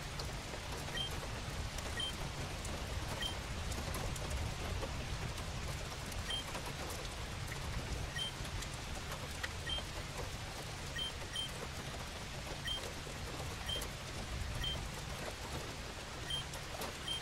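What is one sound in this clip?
Short electronic blips chime now and then.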